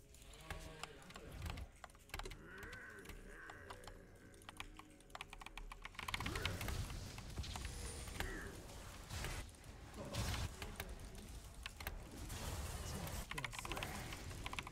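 Game sound effects of clicks and spell blasts play.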